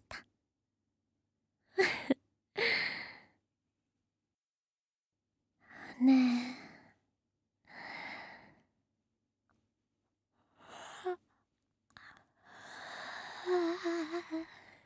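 A young woman speaks softly and teasingly, very close to the microphone.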